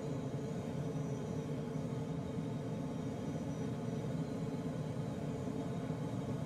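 An aircraft engine drones steadily in flight.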